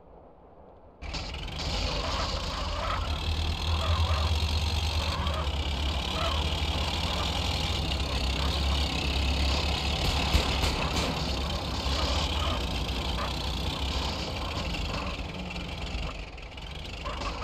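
A heavy diesel engine rumbles and roars as a bulldozer drives over rough ground.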